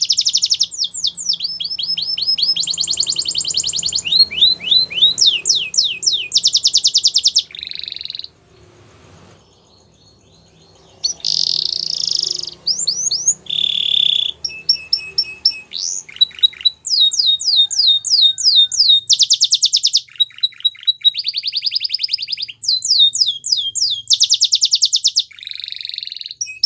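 A canary sings close by in rapid trills and chirps, with short pauses.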